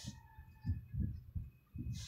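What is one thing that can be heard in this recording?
A stone knocks softly as a hand lifts it from a cloth.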